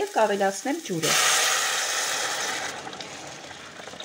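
Water pours from a kettle into a pot with a rushing hiss.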